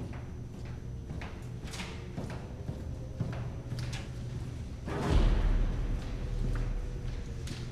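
Footsteps echo in a corridor as a man walks.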